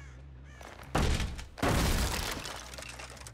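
Wooden boards smash and splinter loudly.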